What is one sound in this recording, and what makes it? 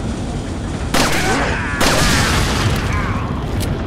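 Gunshots bang loudly and echo.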